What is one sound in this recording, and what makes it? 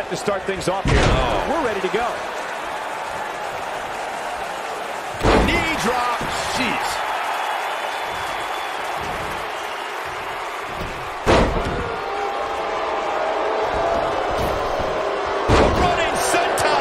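Bodies slam with heavy thuds onto a wrestling ring.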